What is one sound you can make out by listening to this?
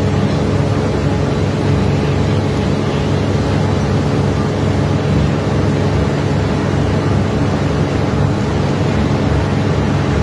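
A boat engine hums steadily and loudly nearby.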